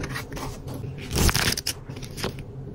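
Pages of a small booklet flip quickly.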